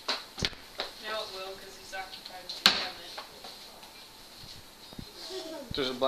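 A wooden cabinet door creaks and knocks as it swings.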